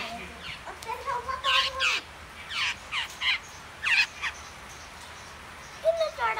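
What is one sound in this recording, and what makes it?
Young birds chirp loudly.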